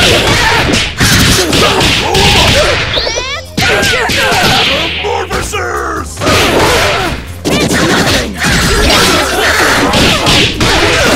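Sharp smacks and clangs of blows land in quick bursts.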